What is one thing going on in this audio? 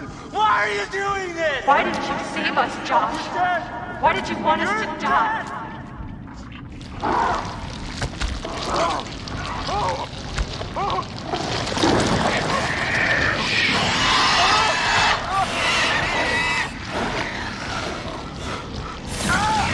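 A young man speaks tensely and breathes hard.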